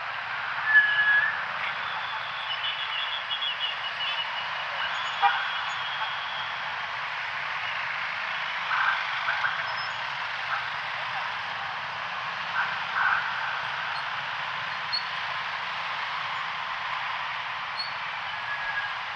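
Heavy traffic of motorbikes and cars rumbles steadily along a busy street outdoors.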